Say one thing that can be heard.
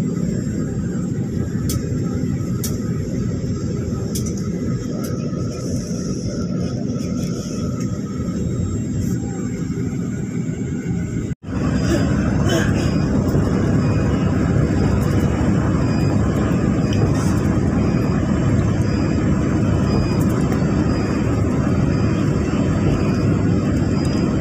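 A vehicle rumbles steadily, heard from inside.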